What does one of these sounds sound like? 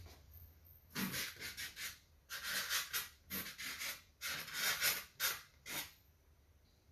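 A paintbrush swishes softly across canvas.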